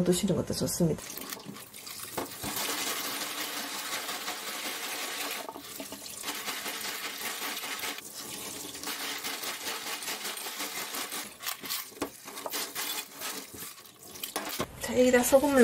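Tap water splashes steadily into a metal bowl.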